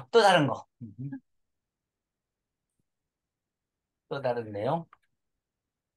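A man speaks briefly over an online call, pausing between phrases.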